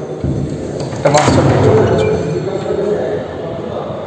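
A wooden door creaks and swings open.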